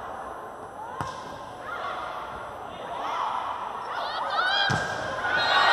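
A volleyball is struck hard with a sharp slap.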